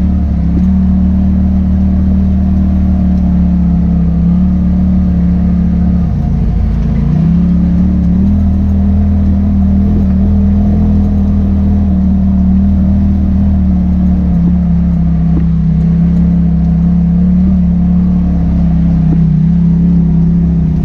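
An off-road vehicle's engine drones steadily up close, shifting pitch as it climbs.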